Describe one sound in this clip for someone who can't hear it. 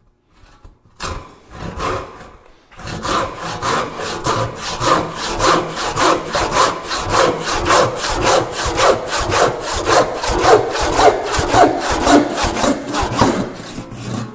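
A hand saw cuts through wood with quick, steady rasping strokes.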